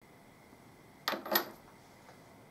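A metal ring clinks as it is set down on a metal chuck.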